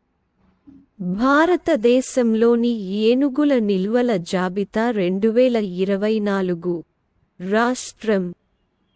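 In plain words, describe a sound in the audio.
A synthesized voice reads out text through a computer speaker.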